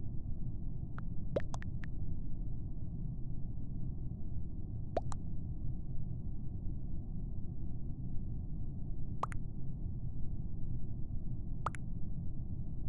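Short electronic chat blips pop up now and then.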